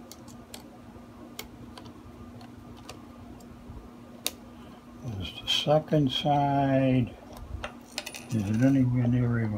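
Small metal parts click and tap as a screwdriver works on them.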